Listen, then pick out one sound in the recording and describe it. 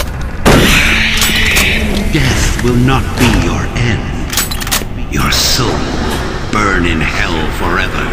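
A shotgun is reloaded with metallic clicks.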